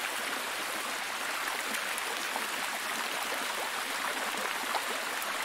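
A waterfall splashes steadily over rocks.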